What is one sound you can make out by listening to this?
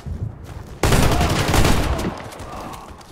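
Gunfire bursts loudly in a video game.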